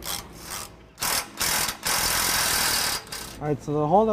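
A cordless impact wrench hammers as it drives a bolt.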